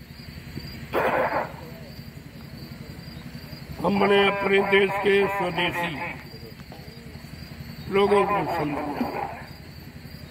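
An elderly man speaks slowly in drawn-out phrases into a microphone, heard through a loudspeaker.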